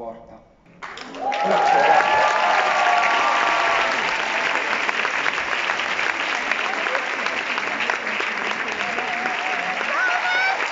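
An audience cheers and applauds loudly.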